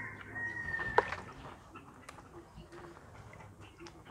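Water sloshes as hands stir in a basin.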